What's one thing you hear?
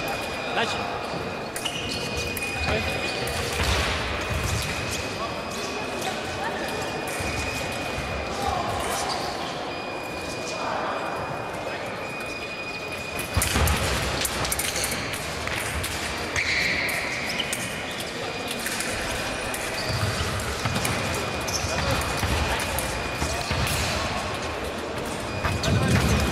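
Many people chatter in the background of a large echoing hall.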